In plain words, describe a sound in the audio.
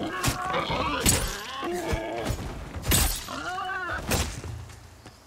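An axe strikes an animal with dull thuds.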